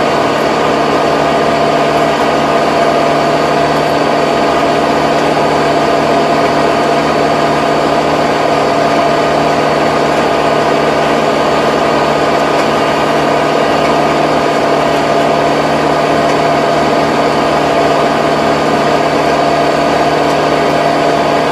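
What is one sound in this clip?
A tractor engine drones loudly and steadily close by.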